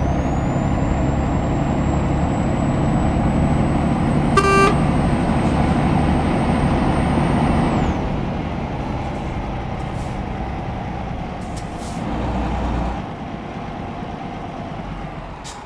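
Tyres roll on a smooth road.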